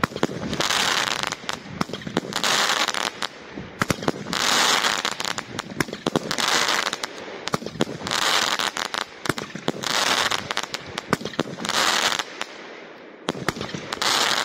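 Fireworks shells hiss loudly as they shoot up.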